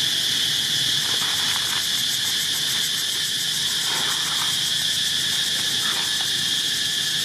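A young monkey squeaks softly.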